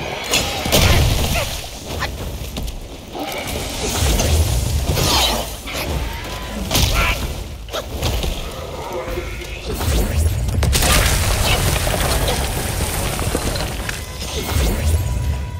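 A huge creature roars and stomps heavily.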